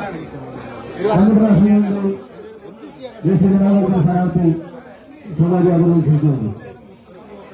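A crowd of men shouts loudly in bursts.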